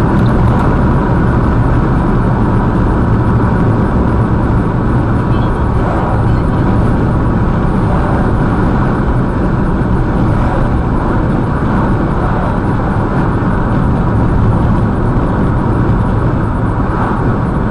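A car's engine hums steadily with road rumble from inside the car.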